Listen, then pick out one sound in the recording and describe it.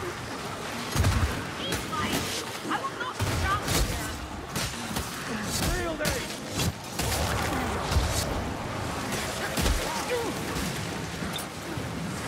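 Weapons strike and slash flesh with heavy thuds.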